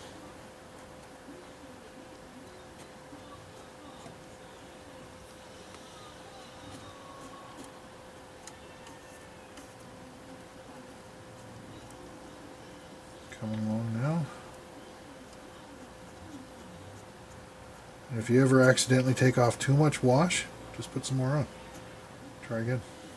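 A cotton swab rubs softly against a plastic model.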